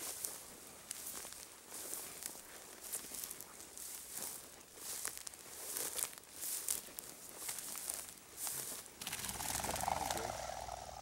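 Footsteps rustle through dry, tall grass.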